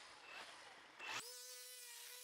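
A small petrol engine sputters as it starts.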